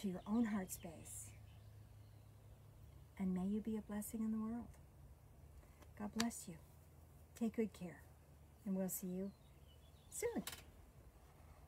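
An elderly woman speaks calmly and slowly, close to a microphone.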